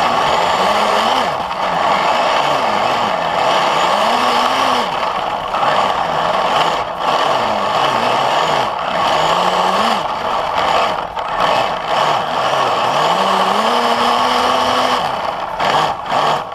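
A small electric motor's whine rises and falls in pitch.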